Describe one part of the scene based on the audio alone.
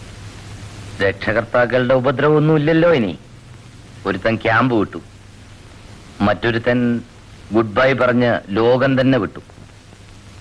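A man speaks calmly and closely.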